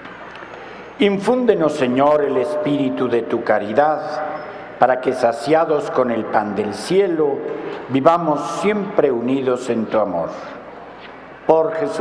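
A man reads out calmly through a microphone in a large echoing hall.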